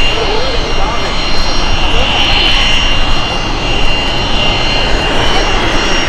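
A jet engine roars and whines loudly close by.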